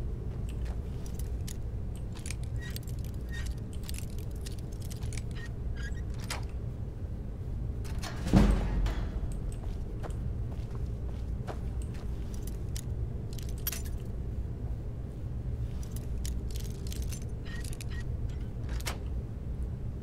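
A lock pick scrapes and clicks inside a metal lock.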